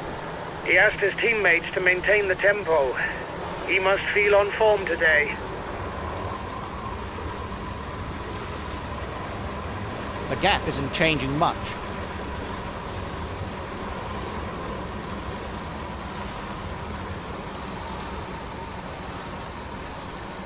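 Bicycle wheels whir on the road.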